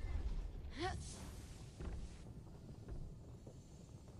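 A heavy stone block lifts with a magical whoosh.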